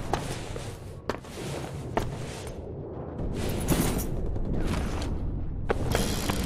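Footsteps crunch on rubble-strewn ground.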